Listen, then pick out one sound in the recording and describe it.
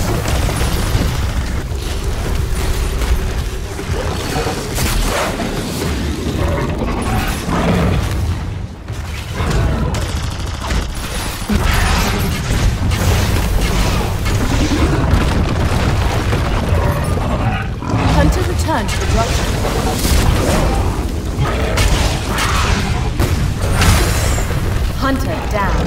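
Fire crackles and roars loudly.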